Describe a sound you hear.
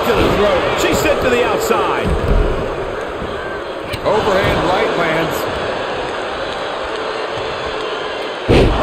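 Bodies slam onto a wrestling mat with heavy thuds.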